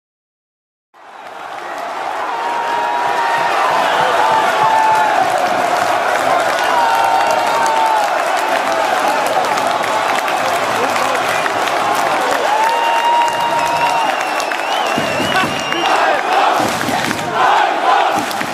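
A stadium crowd roars and cheers wildly.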